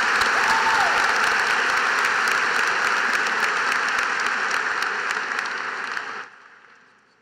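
A large crowd applauds in a large echoing hall.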